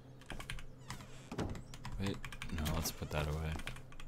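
A wooden door swings open with a creak.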